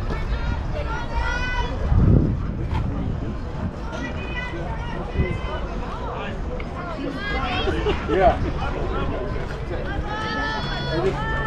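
Young girls call out and cheer in the open air.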